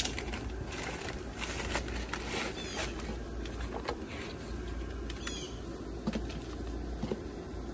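Paper and cardboard rustle and crinkle up close.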